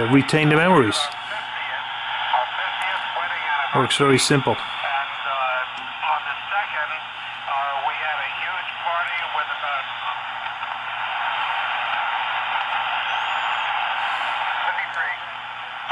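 A radio hisses with steady static.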